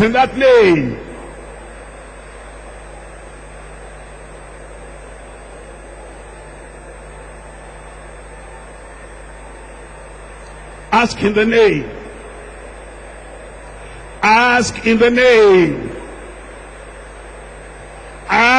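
A man preaches loudly into a microphone in a large echoing hall, in short bursts with long pauses.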